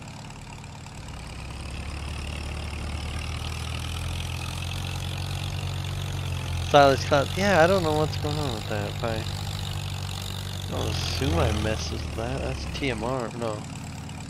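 A tractor engine runs with a low, steady drone.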